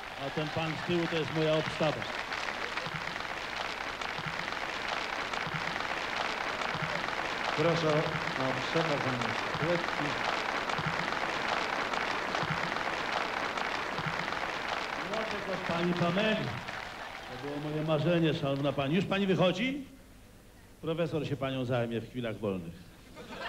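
An elderly man speaks through a microphone in a large hall.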